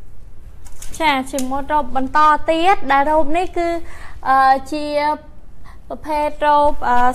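A young woman sings loudly nearby.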